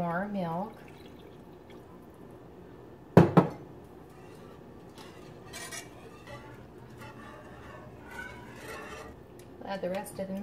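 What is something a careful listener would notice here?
A whisk scrapes and stirs in a pan of liquid.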